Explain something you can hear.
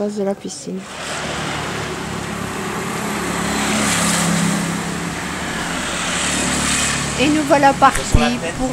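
A vehicle engine idles nearby outdoors.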